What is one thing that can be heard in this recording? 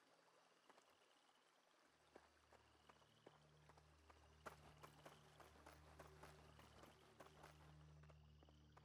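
Footsteps tread steadily on the ground.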